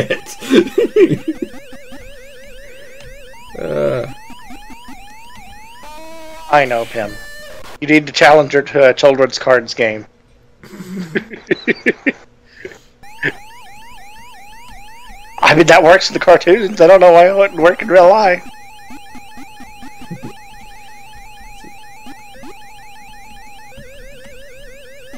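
A video game siren warbles in a quick, repeating rising loop.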